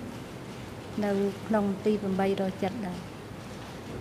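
A middle-aged woman speaks briefly and calmly through a microphone.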